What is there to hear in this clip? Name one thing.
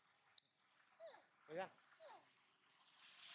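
A young monkey gives a few short, high squeaks close by.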